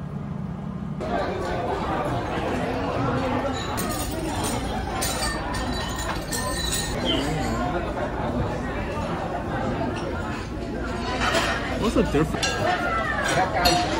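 A large crowd chatters and murmurs indoors.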